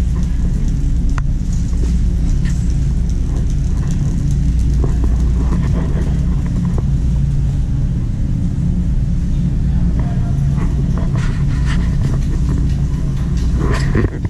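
A shopping cart rattles as it rolls across a hard floor.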